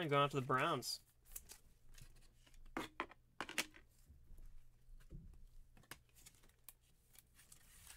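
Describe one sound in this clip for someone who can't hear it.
A plastic card sleeve rustles and clicks in gloved hands.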